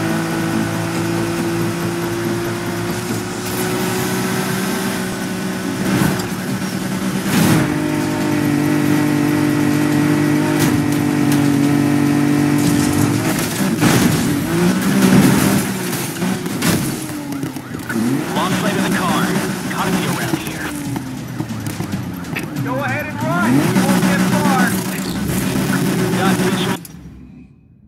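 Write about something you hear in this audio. A race car engine roars at high speed, then revs up and down.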